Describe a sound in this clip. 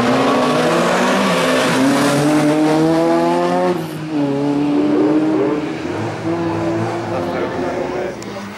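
A rally car engine revs hard and shifts gear as the car speeds away and fades.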